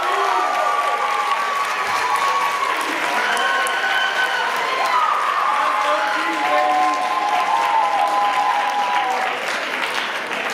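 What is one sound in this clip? Electric guitars play loudly through amplifiers in a large hall.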